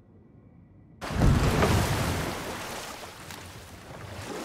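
Oars splash through water as a boat moves along.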